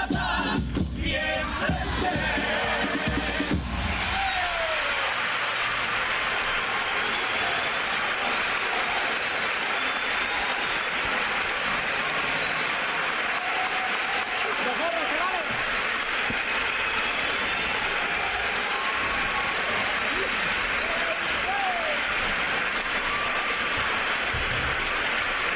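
A large crowd applauds and cheers loudly in a big echoing hall.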